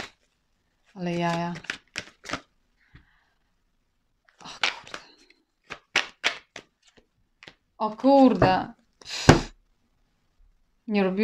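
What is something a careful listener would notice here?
A young woman speaks calmly and close, with pauses.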